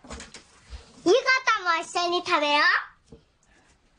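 A young boy speaks up in a high, eager voice.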